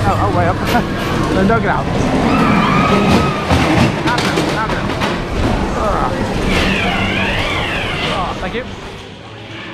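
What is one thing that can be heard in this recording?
A ride car rumbles and rattles along a track.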